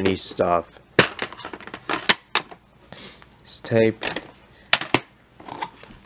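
A plastic cassette case clicks open and snaps shut.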